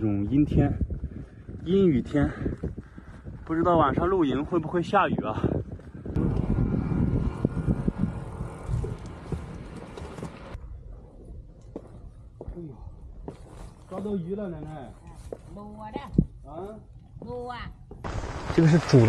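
A young man talks calmly, close by.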